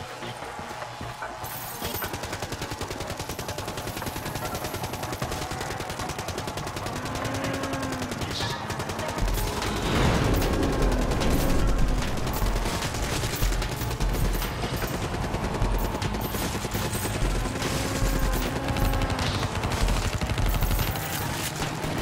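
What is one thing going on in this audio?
Rapid gunfire rattles without a break.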